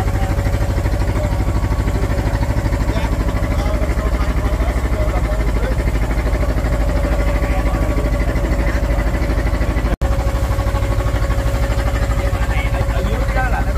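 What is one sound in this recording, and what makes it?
A boat engine chugs loudly and steadily.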